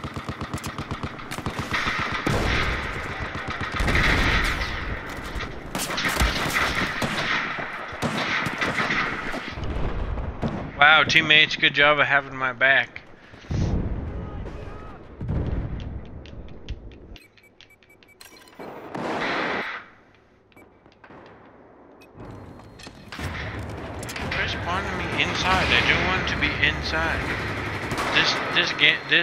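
A young man talks with animation into a headset microphone, close by.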